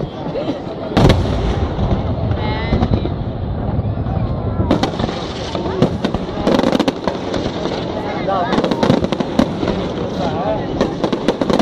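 Fireworks launch with loud booms.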